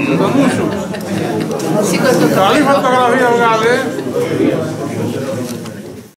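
A woman laughs close by.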